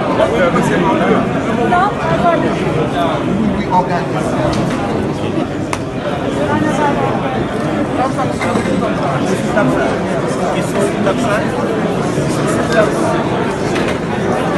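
A crowd of men and women chatter loudly in a large echoing hall.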